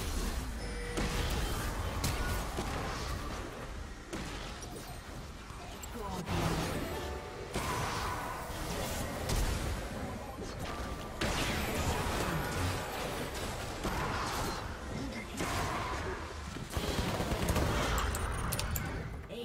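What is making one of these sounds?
Video game spell effects whoosh, zap and crash during a battle.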